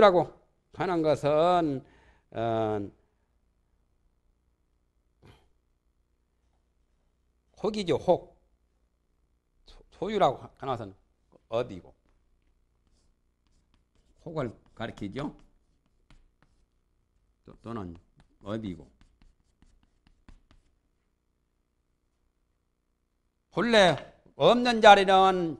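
A man speaks calmly in slow, short phrases, with pauses.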